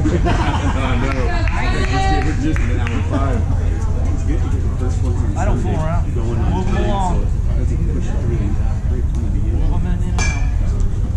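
Men and boys call out and chatter across an open field.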